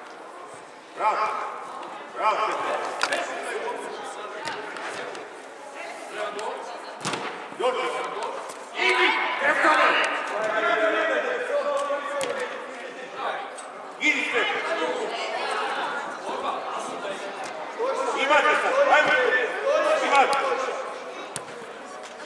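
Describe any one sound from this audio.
A man on the sideline shouts instructions.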